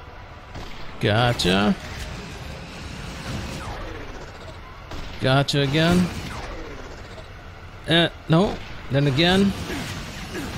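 A sniper rifle fires loud, ringing electronic blasts.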